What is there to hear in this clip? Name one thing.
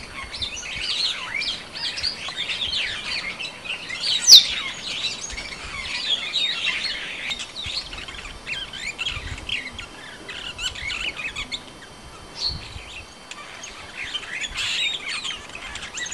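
Many birds chirp and twitter all around outdoors.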